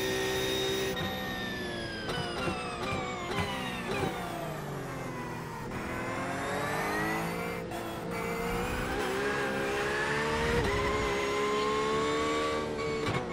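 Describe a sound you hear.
A racing car engine drops in pitch as the car slows for a corner, then climbs again.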